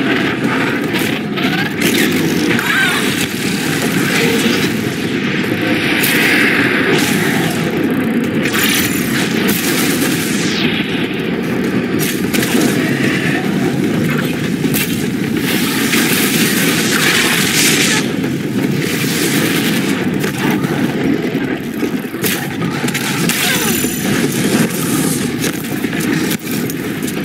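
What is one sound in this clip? A large metal machine clanks and roars.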